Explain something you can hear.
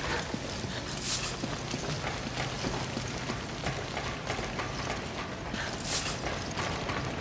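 A bright chime rings as an item is picked up.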